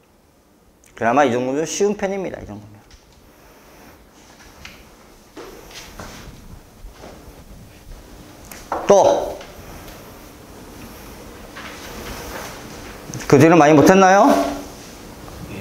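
A man speaks calmly through a microphone in an echoing room.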